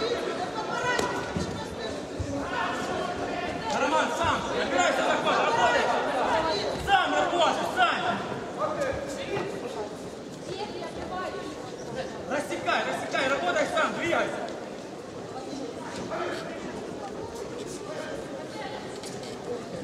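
Bare feet shuffle and thud on a mat.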